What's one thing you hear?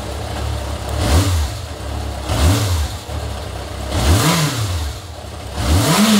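An inline-four motorcycle engine is revved in short bursts.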